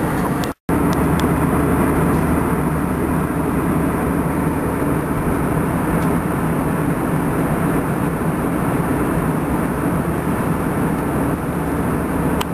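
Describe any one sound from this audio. A jet airliner's engines roar in a steady, low drone inside the cabin.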